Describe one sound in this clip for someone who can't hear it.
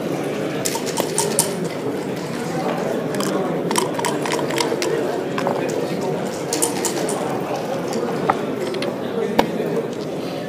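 A game clock button is pressed with a sharp click.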